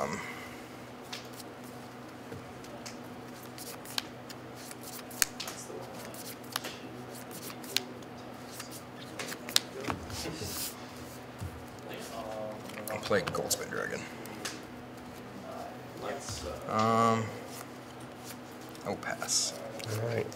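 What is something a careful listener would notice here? Playing cards riffle and tap as a hand shuffles them.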